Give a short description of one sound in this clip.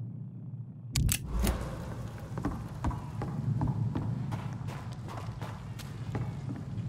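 Footsteps thud on creaking wooden boards.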